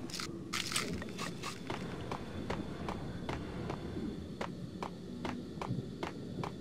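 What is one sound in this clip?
Footsteps echo on a hard floor at a steady pace.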